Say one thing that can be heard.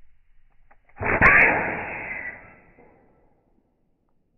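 A projectile strikes a metal sign with a ringing clang.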